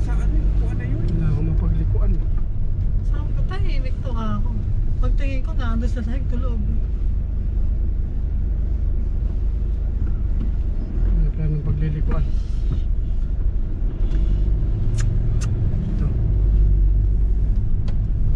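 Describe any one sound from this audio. A car engine rumbles low and steady while driving slowly.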